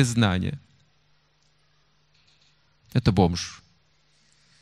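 An older man speaks with animation into a microphone, in short bursts with pauses.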